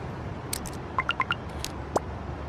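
A phone plays a quick run of short electronic beeps.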